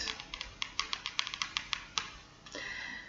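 Fingers tap on cards on a table in quick clicks.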